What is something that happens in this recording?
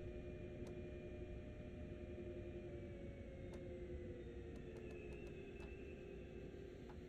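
An electric train's motor whines and drops in pitch as the train slows to a stop.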